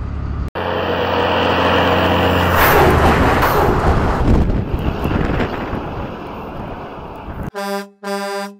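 Truck tyres crunch over gravel.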